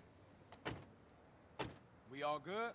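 A heavy metal van door bangs.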